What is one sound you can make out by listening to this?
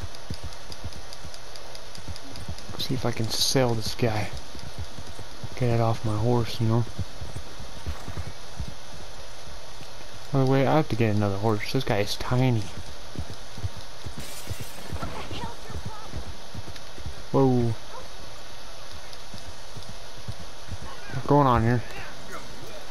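A horse's hooves clop steadily on soft, muddy ground.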